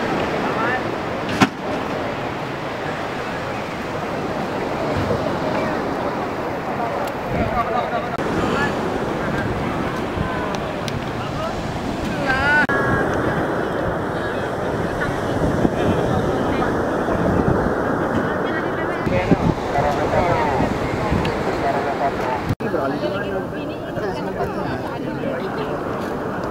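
A crowd of men and women chatter nearby, outdoors.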